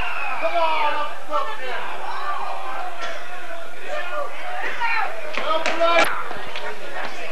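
A crowd of spectators talks and shouts outdoors.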